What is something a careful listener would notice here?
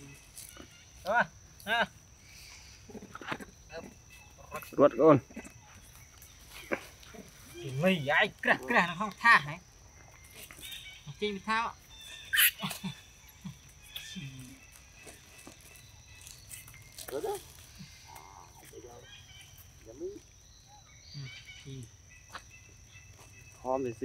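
Monkeys squeal and shriek close by.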